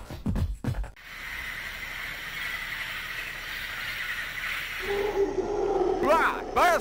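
Birds chirp and whistle in a jungle.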